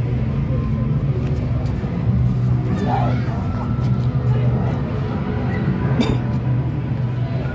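Footsteps crunch and scuff on a wet path.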